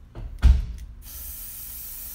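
A spray can hisses steadily.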